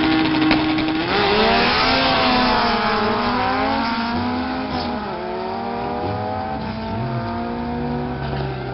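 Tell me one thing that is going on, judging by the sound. Two small cars accelerate away down a drag strip, their engines rising and fading into the distance.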